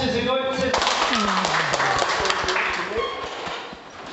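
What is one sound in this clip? A crowd of people claps in an echoing hall.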